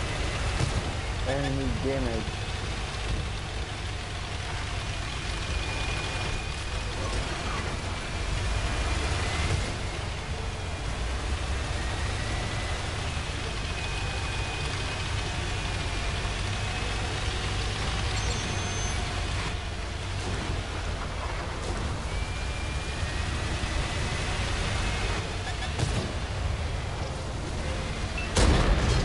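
A tank engine rumbles steadily as the tank drives over grass.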